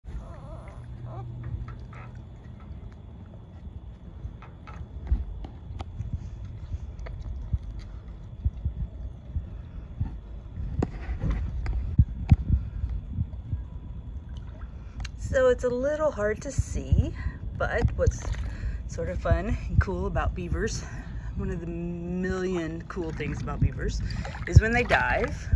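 Water splashes and sloshes as beavers paddle about.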